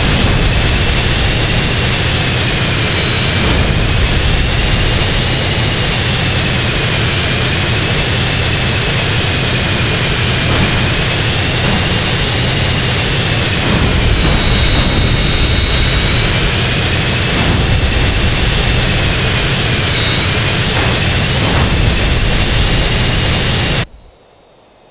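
A jet engine roars and whines steadily, its pitch wavering up and down.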